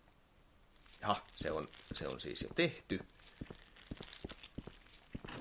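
Footsteps clack on a hard floor.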